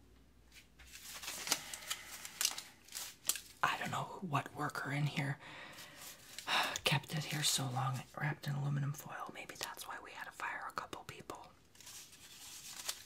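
Foil crinkles and rustles in a man's hands.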